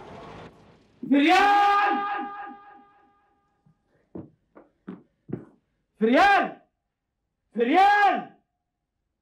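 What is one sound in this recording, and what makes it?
A man shouts loudly with excitement.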